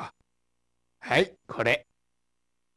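A young man answers briefly.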